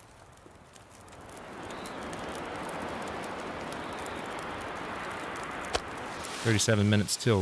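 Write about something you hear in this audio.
A campfire crackles and roars steadily.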